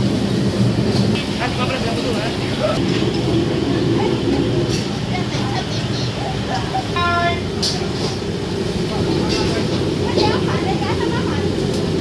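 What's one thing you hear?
A crowd murmurs steadily in a busy, noisy room.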